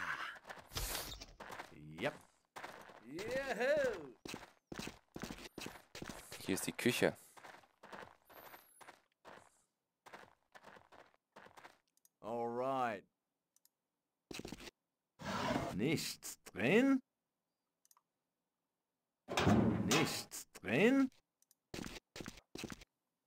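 A young man talks casually and animatedly into a close microphone.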